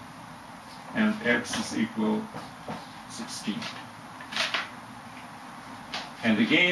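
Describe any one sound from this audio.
A middle-aged man speaks calmly and clearly, close by.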